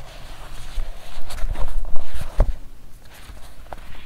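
A leather cover thumps shut.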